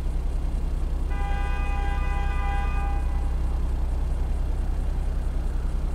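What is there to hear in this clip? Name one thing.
A car engine idles with a deep, steady, throbbing rumble.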